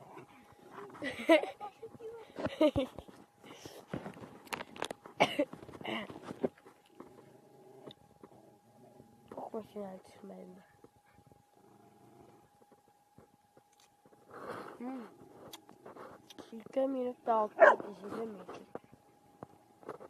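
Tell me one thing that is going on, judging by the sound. Two dogs growl and yip as they play-fight.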